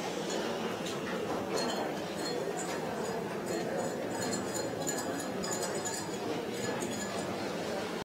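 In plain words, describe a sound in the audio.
Glass clinks softly on a table.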